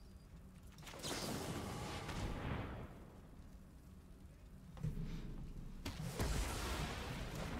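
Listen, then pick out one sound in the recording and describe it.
A magical spell effect whooshes and swells.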